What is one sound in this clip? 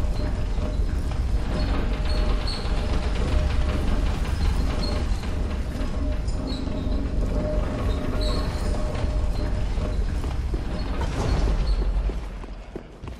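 A heavy lift rumbles steadily as it descends.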